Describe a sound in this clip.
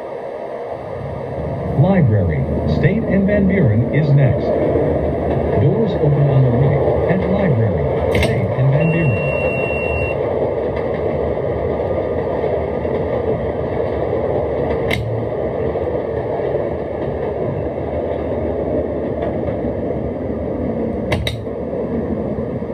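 A train rumbles along the rails, slowly picking up speed.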